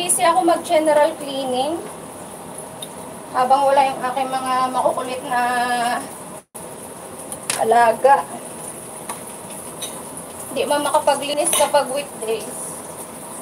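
A young woman speaks close by with animation, in bursts.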